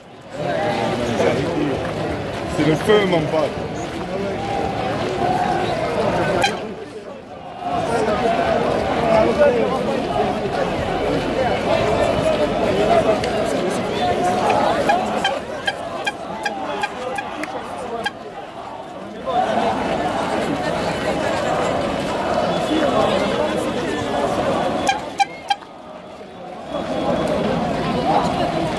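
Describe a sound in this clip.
A large crowd of football supporters chants outdoors.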